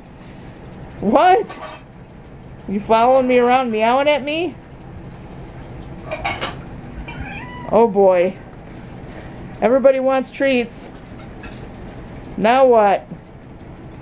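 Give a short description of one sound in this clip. Cats meow loudly and repeatedly close by.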